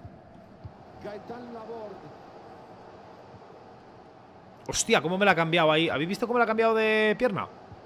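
A young man speaks close to a microphone, loudly and with excitement.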